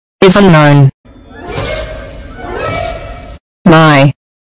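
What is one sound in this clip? A cartoonish young voice shouts angrily.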